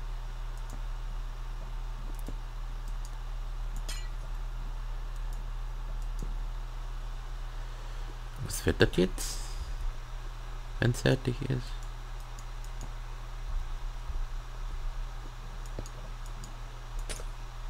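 Game blocks are placed with short, soft clicks.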